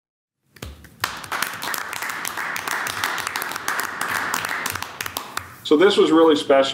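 A group of people applauds in a room.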